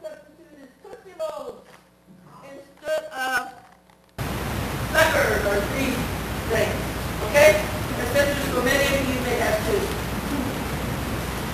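An elderly woman talks calmly to children nearby.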